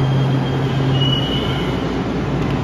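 Train brakes squeal briefly as the train stops.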